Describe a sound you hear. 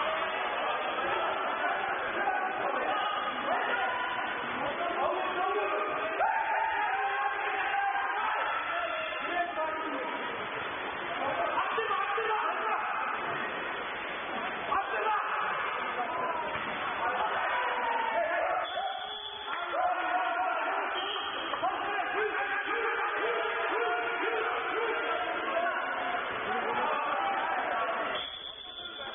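Swimmers splash and churn the water in a large echoing hall.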